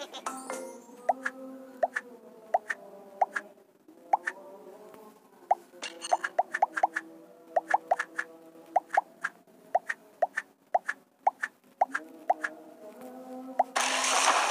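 Short pops sound as fruit drops into a blender.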